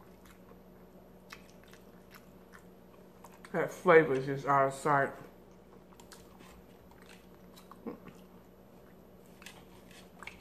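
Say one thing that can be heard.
Wet food squelches and smacks as a woman chews close to a microphone.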